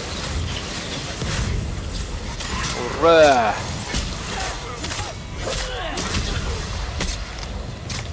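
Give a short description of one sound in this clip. Blasts boom with a low rumble.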